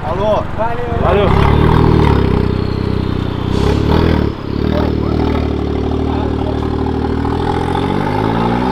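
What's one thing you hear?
A small car engine starts and idles roughly.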